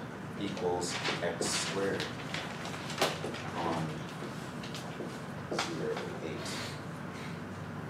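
A man speaks calmly in a room with a slight echo.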